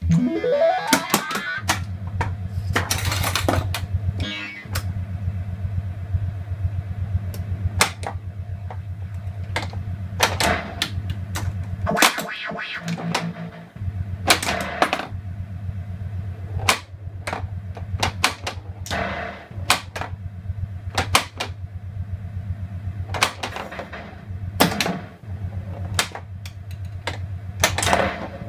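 A pinball machine hums with a low steady buzz.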